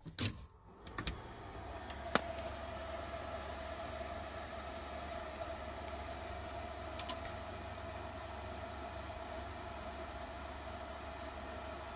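Electronic equipment powers up with a steady, even hum of cooling fans.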